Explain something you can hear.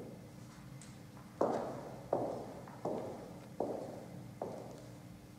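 A pipe organ plays loud, sustained chords that ring out in a large echoing hall.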